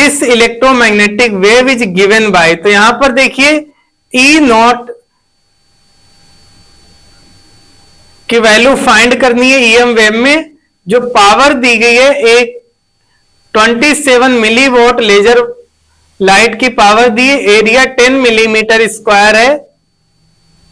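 A young man reads aloud clearly into a close microphone, with pauses.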